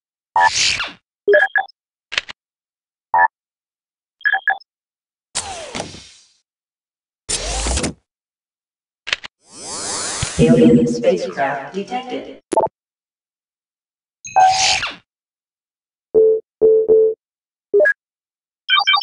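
Short electronic beeps and whooshes sound as game menus open and close.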